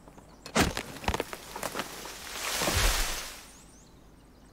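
A tree crashes down with a rushing swoosh.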